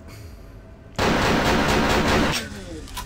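A gun fires in rapid fire.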